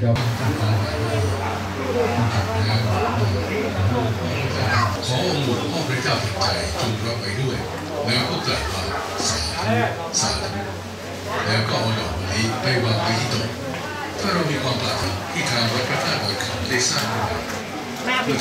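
A crowd of men and women murmurs and chatters nearby.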